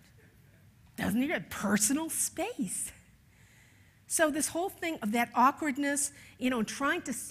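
An older woman speaks with animation through a microphone.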